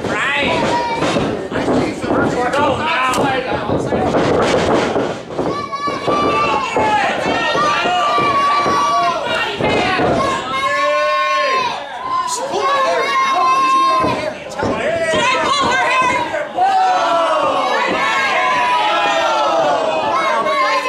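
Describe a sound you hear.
A crowd of men and women cheers and shouts loudly in a large echoing hall.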